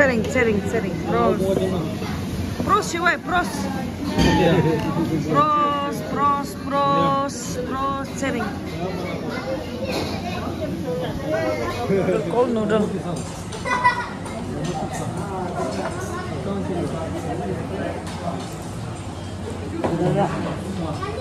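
Several people talk and laugh together nearby in a lively hubbub.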